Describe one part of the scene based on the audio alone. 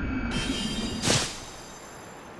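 A body lands with a heavy thump in snow.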